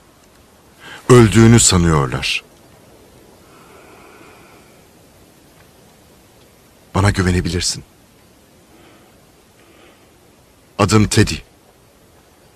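A man speaks quietly and calmly, close by, in short phrases.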